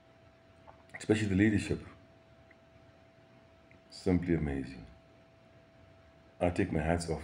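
A middle-aged man speaks calmly and close, in short bursts with pauses.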